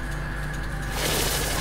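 A teleporter hums and whooshes.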